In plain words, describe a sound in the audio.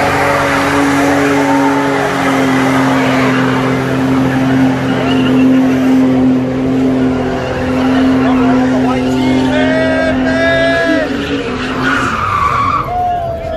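Tyres screech and spin on the road.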